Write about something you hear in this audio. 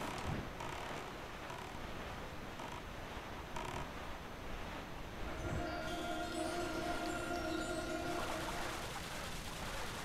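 A small boat glides over the sea with a steady rushing of water.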